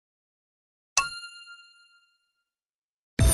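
A bright electronic chime rings once.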